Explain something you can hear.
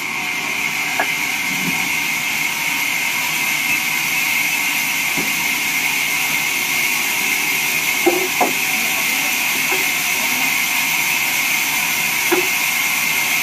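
Wooden planks knock against each other.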